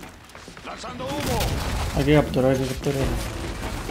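Gunfire rattles close by.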